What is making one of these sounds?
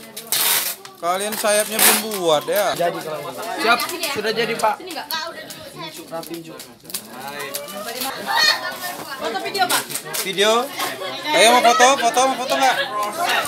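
Teenagers talk and laugh nearby.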